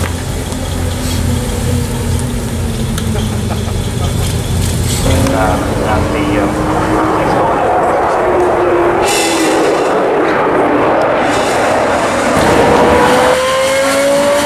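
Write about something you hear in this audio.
A sports car engine roars and revs loudly.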